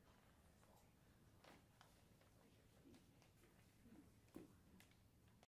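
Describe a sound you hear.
A seated audience murmurs quietly.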